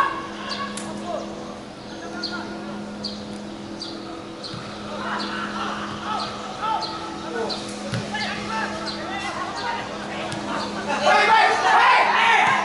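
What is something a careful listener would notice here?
Young men shout and call out to each other across an open outdoor pitch.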